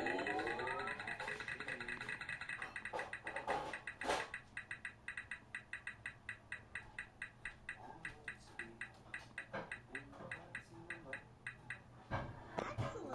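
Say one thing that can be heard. A prize wheel spins with rapid ticking clicks that gradually slow down.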